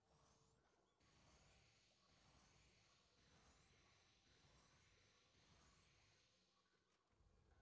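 A magical shimmer rings out with bright chiming tones.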